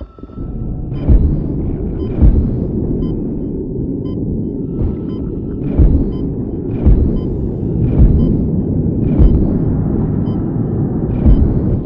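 A weapon fires in sharp, crackling bursts every second or so.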